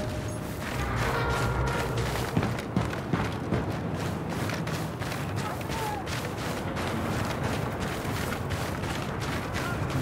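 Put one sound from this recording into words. Heavy boots run with quick, regular footsteps.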